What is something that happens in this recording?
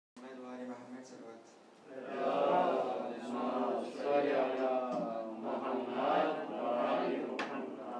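A young man speaks steadily into a microphone, heard through a loudspeaker.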